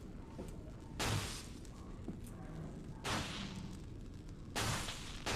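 A gun fires single loud shots that echo.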